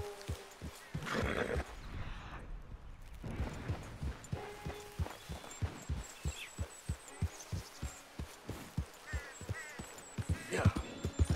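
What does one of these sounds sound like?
Horse hooves thud in a steady galloping rhythm.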